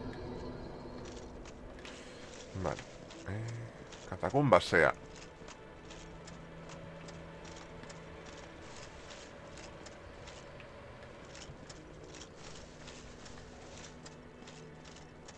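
Footsteps thud softly on grass and stone.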